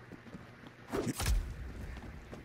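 A knife strikes with a sudden thud.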